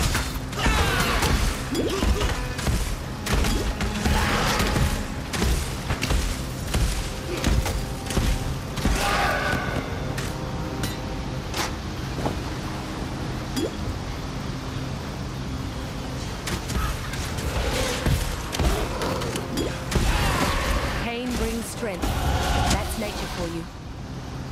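Game combat sounds of blows and spells crack and thud.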